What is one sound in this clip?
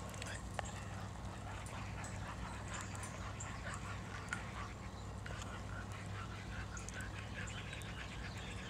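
A spoon scrapes and stirs inside a metal cup.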